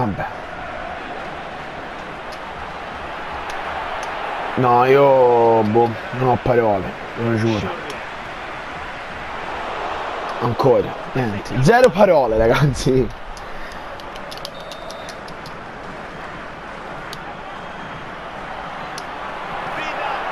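A large stadium crowd murmurs and cheers steadily in the background.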